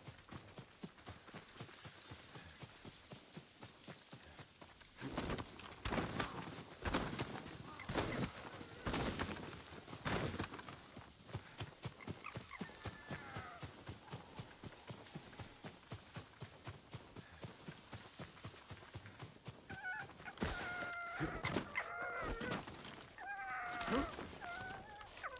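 Footsteps run quickly through grass and undergrowth.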